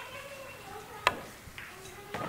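A cue strikes a pool ball with a sharp click.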